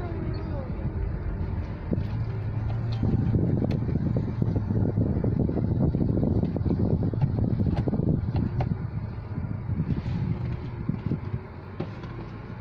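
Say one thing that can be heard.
A car engine hums steadily from inside the car as it drives slowly.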